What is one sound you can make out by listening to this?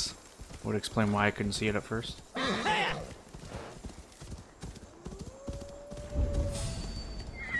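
A horse's hooves crunch steadily through snow.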